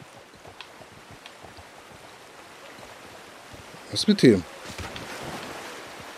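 Water rushes over rocks in a stream.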